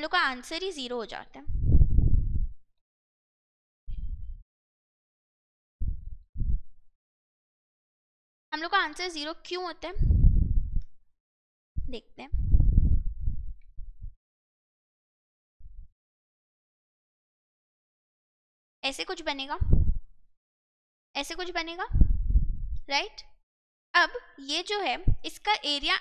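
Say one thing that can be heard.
A young woman speaks calmly and explains, close to a microphone, in bursts with pauses.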